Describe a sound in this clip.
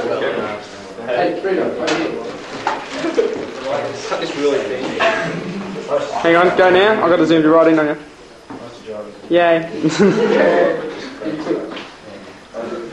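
Several young people chatter in the background.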